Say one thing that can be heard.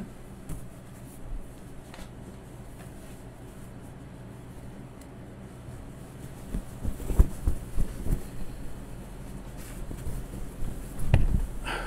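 Cloth rustles as it is unfolded and shaken out.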